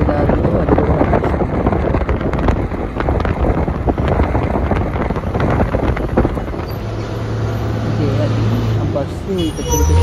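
A car drives along a road with steady rumbling road noise.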